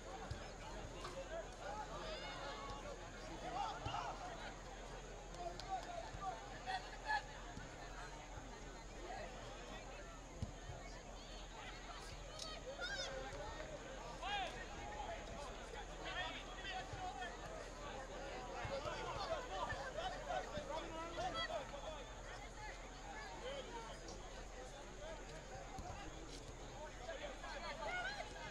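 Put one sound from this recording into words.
A crowd of spectators chatters and shouts outdoors at a distance.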